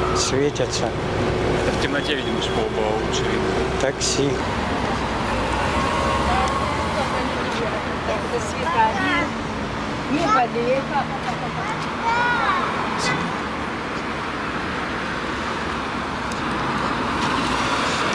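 Street traffic hums steadily in the distance.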